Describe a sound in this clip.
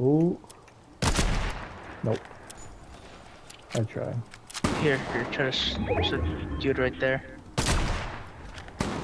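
A rifle fires loud, booming shots that ring out.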